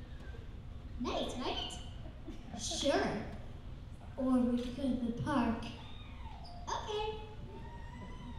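A young girl speaks into a microphone with animation, heard through loudspeakers in a large hall.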